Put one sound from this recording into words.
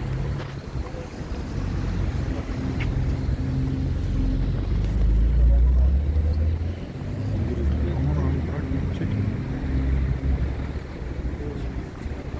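Several people walk down stone steps.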